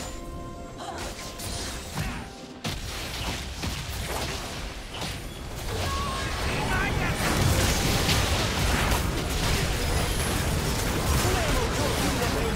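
Magic blasts and clashing hits crackle in a busy fight, growing louder.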